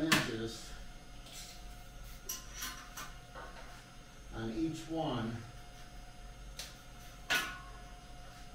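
A metal strip clanks and scrapes against a saw table.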